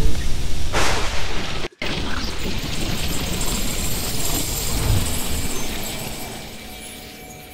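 A fiery burst crackles with showering sparks and slowly fades.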